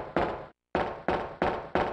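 Heavy footsteps thud and echo in a hard corridor.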